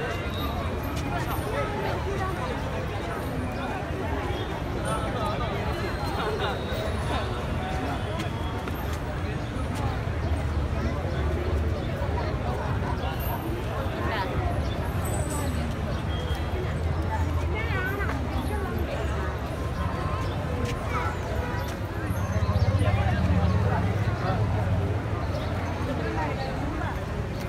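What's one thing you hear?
A large crowd chatters and murmurs all around, outdoors.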